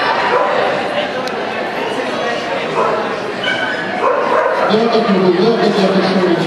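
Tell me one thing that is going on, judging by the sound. A crowd murmurs in a large indoor hall.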